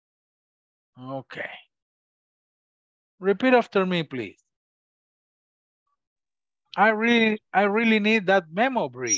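A man reads out slowly through an online call.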